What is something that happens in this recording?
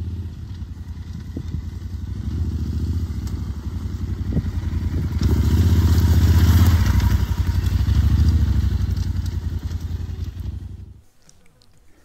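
A motorcycle engine rumbles and revs as the bike rides over rough ground, drawing near and then pulling away.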